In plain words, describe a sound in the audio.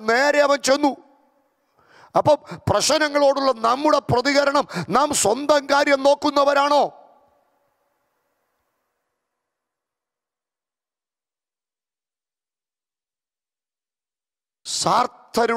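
A man speaks with animation through a microphone.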